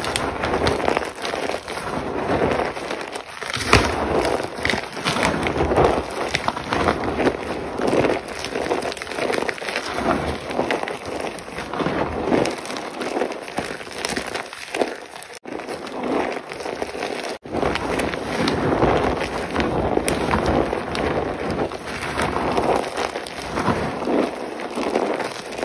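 Hands crunch and crumble chalky lumps close up.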